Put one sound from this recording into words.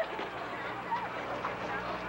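A young woman cries out loudly.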